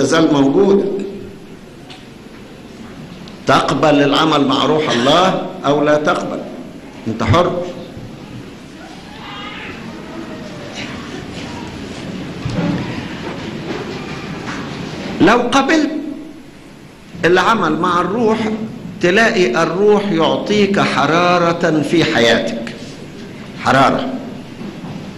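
An elderly man speaks slowly and earnestly into a microphone, with pauses.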